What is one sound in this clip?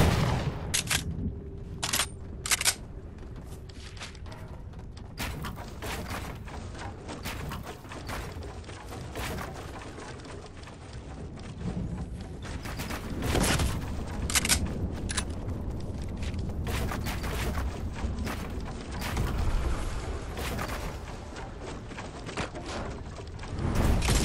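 Building pieces snap into place with repeated sharp clacks.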